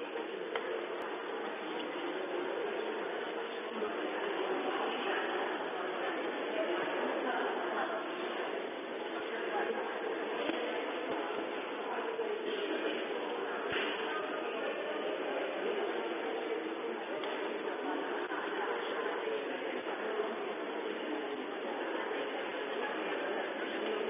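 A crowd of adults chatters and murmurs in a large echoing hall.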